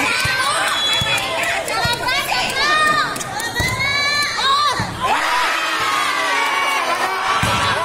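A crowd of young people shouts and cheers loudly outdoors.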